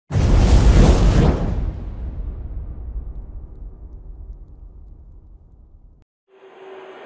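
A fiery blast roars and rumbles away.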